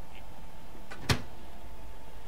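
A microwave door clicks open.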